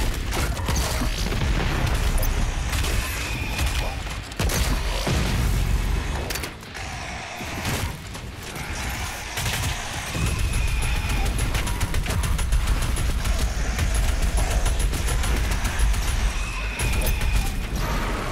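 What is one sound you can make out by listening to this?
A heavy gun fires rapid bursts of shots.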